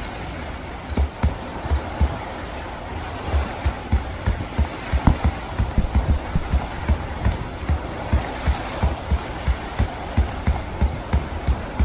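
Footsteps thud steadily on a dirt path.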